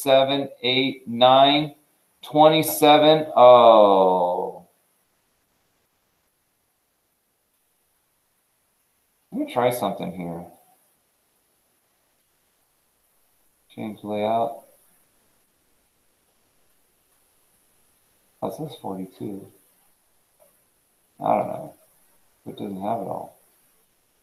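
A man speaks calmly close by, in short phrases with long pauses.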